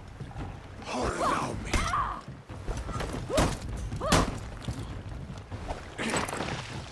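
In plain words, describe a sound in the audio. Swords clash and ring with metallic hits.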